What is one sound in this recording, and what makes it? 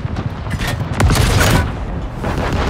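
A tank's shell explodes with a loud blast.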